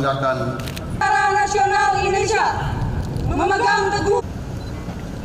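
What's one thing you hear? A man shouts commands loudly through a loudspeaker outdoors.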